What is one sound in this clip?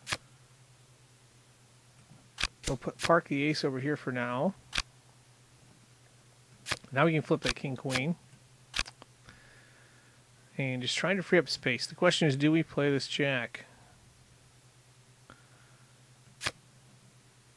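Playing cards snap into place with short, crisp clicks.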